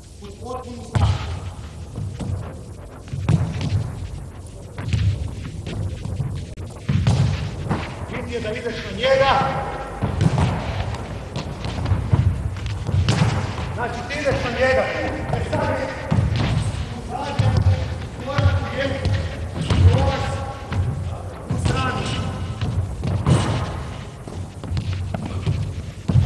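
A handball bounces and thuds on a hard floor in a large echoing hall.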